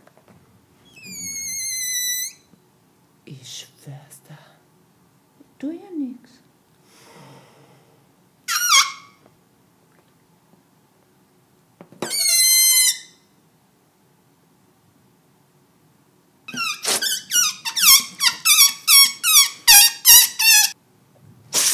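Air squeals out of a rubber balloon's stretched neck.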